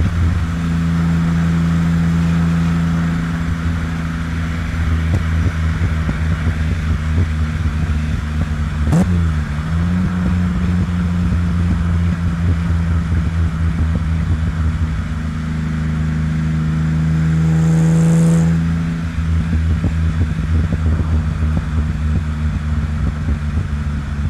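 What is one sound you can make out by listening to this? A car engine hums steadily close by, rising in pitch as it revs and then settling.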